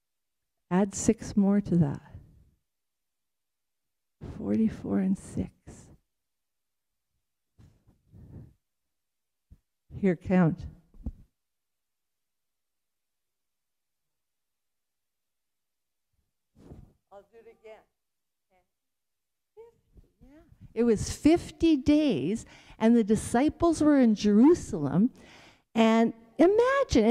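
A woman speaks into a microphone with pauses, heard through loudspeakers in an echoing hall.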